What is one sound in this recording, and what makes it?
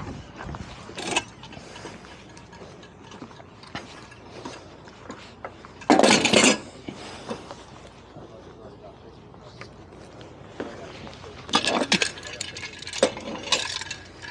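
A boat hull knocks against a wooden dock.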